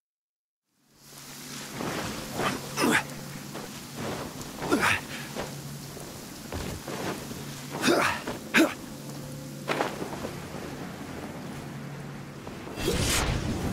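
Magical whooshes and chimes sound in a video game.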